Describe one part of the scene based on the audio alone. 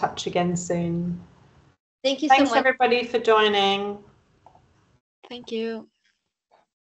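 A woman speaks over an online call, heard through a headset microphone.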